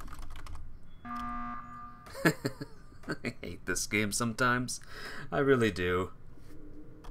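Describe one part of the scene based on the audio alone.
An alarm blares loudly.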